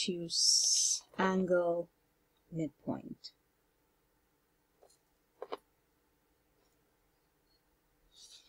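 A pencil scratches across paper.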